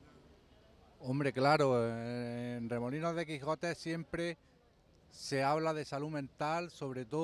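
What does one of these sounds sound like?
A middle-aged man speaks with animation, close to a microphone.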